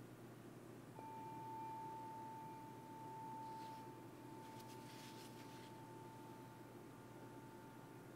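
A singing bowl is struck and rings with a long, steady, slowly fading tone.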